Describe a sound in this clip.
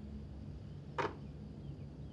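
A foot knocks against a toy car.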